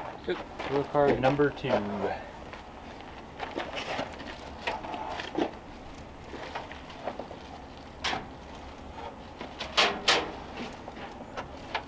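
A loose door panel knocks and thumps against a car door.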